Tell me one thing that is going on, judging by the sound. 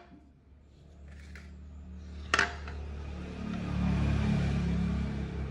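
An electric planer hums low and steady close by.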